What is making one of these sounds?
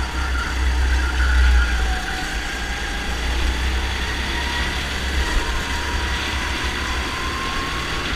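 Other go-kart engines buzz nearby.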